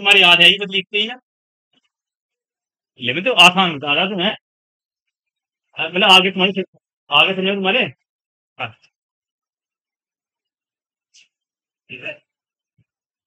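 A young man speaks calmly in bursts, close by, with short pauses.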